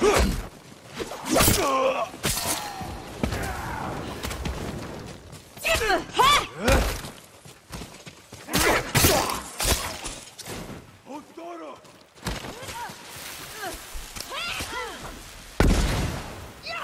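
Swords clash and slash with sharp metallic rings.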